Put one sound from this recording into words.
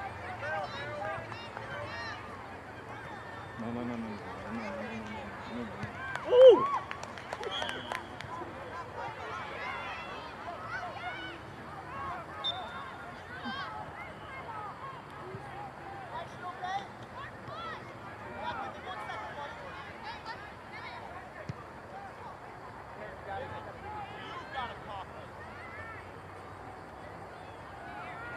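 A small crowd of spectators chats and calls out outdoors.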